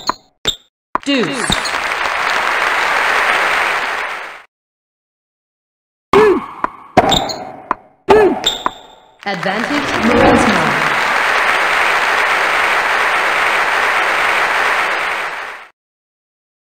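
Crowds applaud and cheer.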